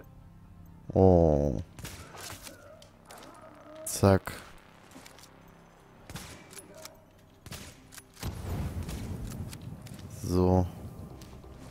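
Sniper rifle shots boom with a ringing echo.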